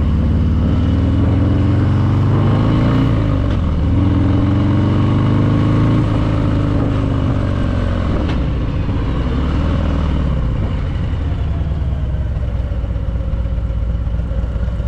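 A motorcycle engine rumbles loudly, its pitch rising and falling as the rider shifts gears.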